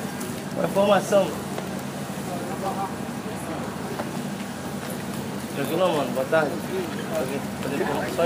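Passers-by talk faintly outdoors on a busy pavement.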